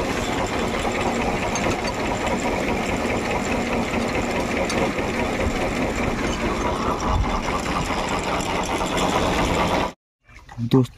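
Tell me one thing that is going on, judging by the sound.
Water gushes noisily from a pipe.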